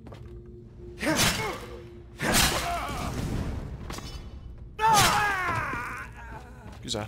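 A man grunts and cries out in pain.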